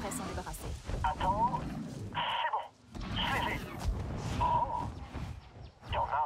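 Large wings flap loudly as a creature takes off.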